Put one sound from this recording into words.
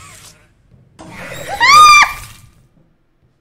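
A young woman screams loudly close to a microphone.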